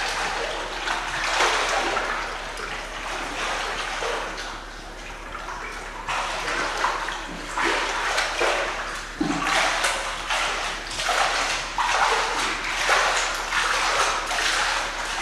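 A child splashes and kicks through water in an echoing indoor pool.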